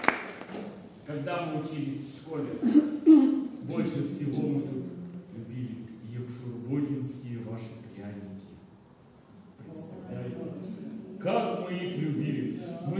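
An elderly man sings into a microphone.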